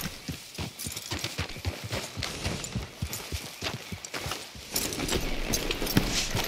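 Leaves and brush rustle as horses push through.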